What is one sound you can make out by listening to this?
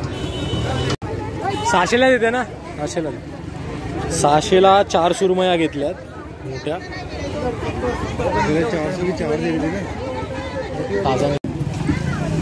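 Women talk with animation nearby, amid a busy outdoor crowd.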